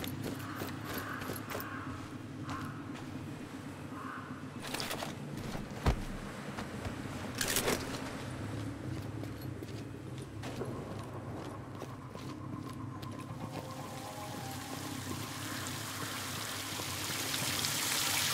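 Footsteps rustle through grass at a steady walking pace.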